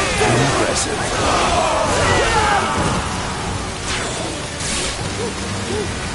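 Swords clash and slash in a busy fight.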